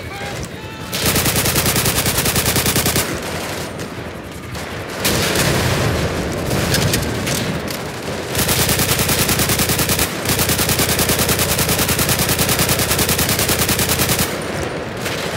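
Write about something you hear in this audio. A submachine gun fires rapid bursts of shots.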